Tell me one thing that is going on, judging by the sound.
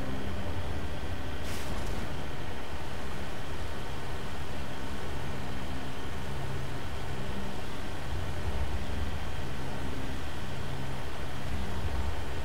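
A vehicle engine rumbles low and steadily.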